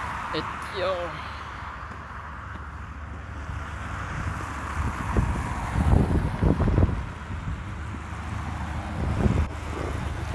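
A young man talks close to the microphone.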